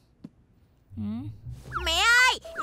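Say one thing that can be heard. A small child speaks in a high, squeaky voice.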